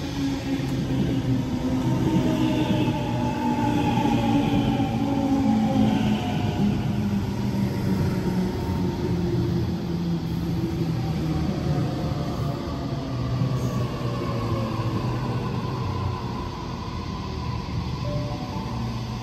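An electric train rolls past close by, its motors humming and whining in shifting pitches.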